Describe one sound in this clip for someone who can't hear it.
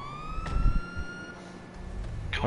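A police siren gives a short rising whoop.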